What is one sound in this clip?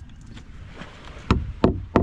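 A hammer knocks on wood.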